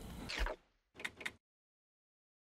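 Two soft menu clicks sound in quick succession.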